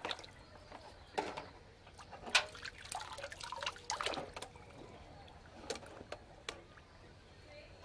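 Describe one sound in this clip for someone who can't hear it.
Water splashes and sloshes in a basin as a plastic toy crane is pushed through it.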